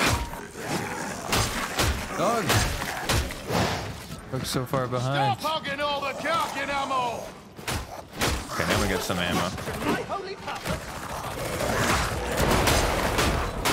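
Heavy blows thud and squelch into attacking creatures.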